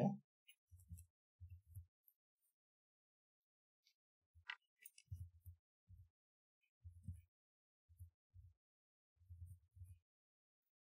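Keys click softly on a keyboard.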